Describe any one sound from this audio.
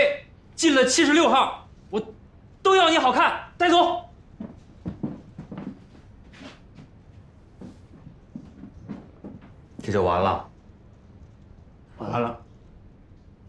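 A middle-aged man speaks sternly and firmly close by.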